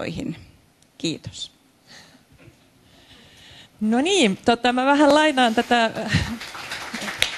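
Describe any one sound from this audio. A middle-aged woman speaks through a microphone and loudspeakers.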